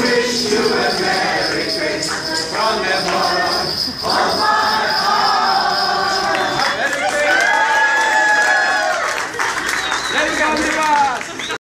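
A crowd of people sing together.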